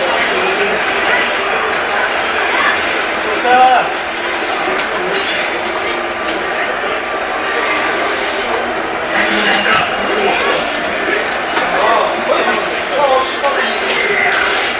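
Swords clash and ring.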